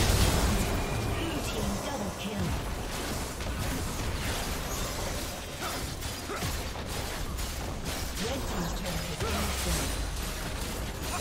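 Magic spells crackle and burst in a video game battle.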